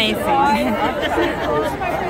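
An elderly woman laughs close by.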